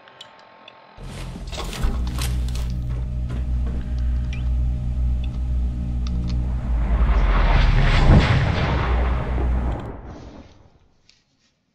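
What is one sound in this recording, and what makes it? A machine hums deeply and steadily, then swells into a rushing whoosh.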